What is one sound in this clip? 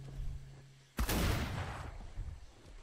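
A flintlock pistol fires with a sharp bang.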